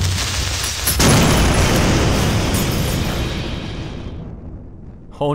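Explosions boom and rumble, then slowly fade.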